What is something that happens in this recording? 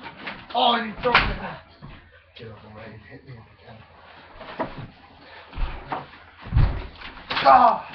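Bodies thud onto a mattress.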